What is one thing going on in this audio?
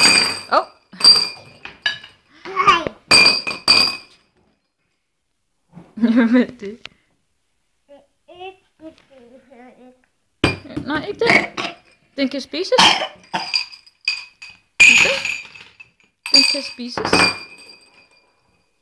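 Glass marbles rattle and clink in a jar.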